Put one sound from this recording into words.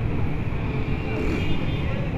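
Auto-rickshaw engines rumble and putter nearby.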